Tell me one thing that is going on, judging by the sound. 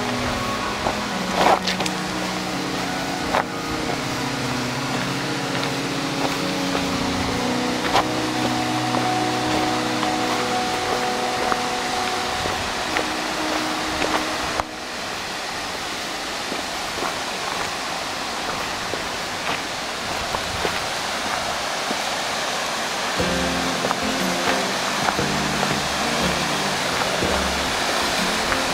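A mountain stream rushes steadily over rocks.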